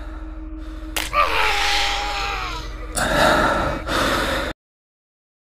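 A monster lets out a loud, harsh screech that falls in pitch.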